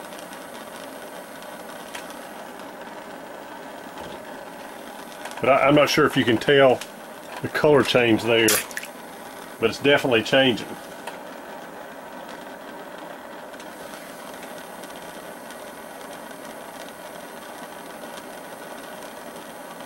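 A gas torch flame hisses steadily.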